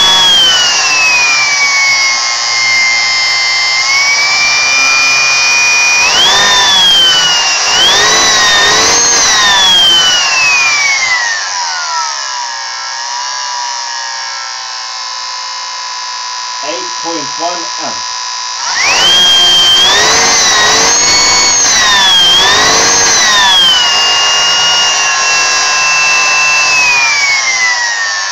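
An electric motor whines loudly, its pitch rising and falling as it speeds up and slows down.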